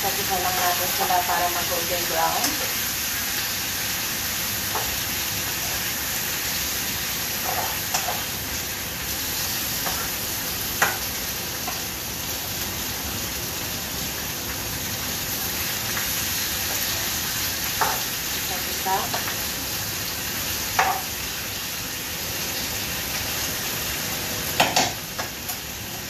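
Utensils clink against pans.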